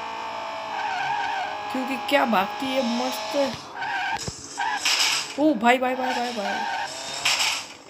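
Car tyres screech while sliding.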